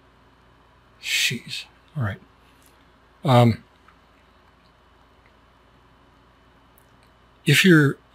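A middle-aged man speaks in short bursts close to a microphone.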